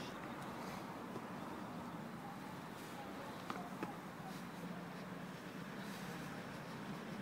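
A man speaks casually outdoors, close by.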